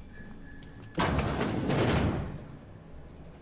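A heavy door slides open with a rushing whoosh.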